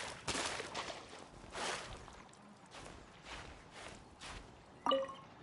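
Hands scrape and scramble against rock while climbing.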